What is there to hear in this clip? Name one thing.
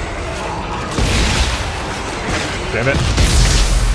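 An electric blast crackles and roars.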